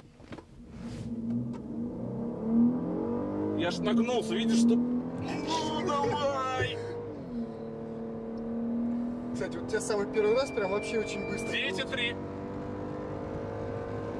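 A car engine hums and rises in pitch as the car speeds up.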